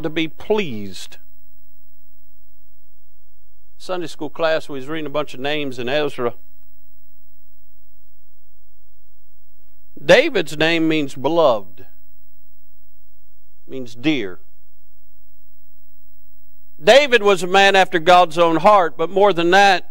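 A man preaches through a microphone in bursts, with pauses between phrases.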